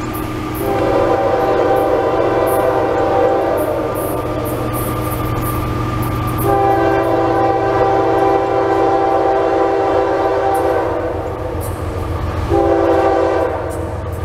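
A train horn blows in long blasts from a distance, growing nearer.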